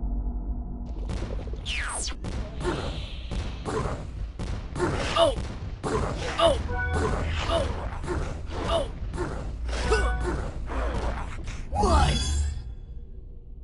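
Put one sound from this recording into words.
Laser blasts and zaps fire rapidly in a game battle.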